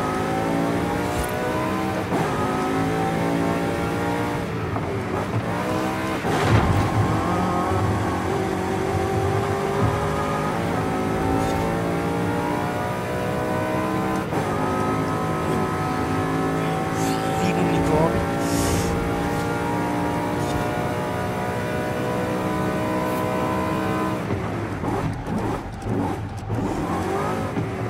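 A car engine roars, rising and falling in pitch as it speeds up and shifts gears.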